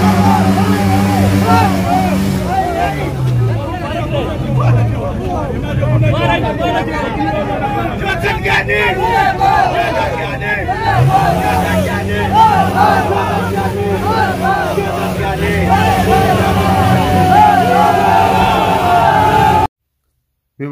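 A crowd chants and cheers loudly outdoors.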